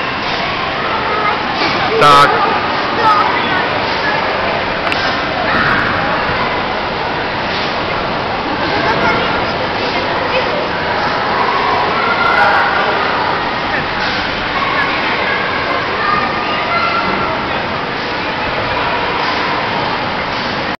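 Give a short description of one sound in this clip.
Children shout and chatter throughout a large echoing hall.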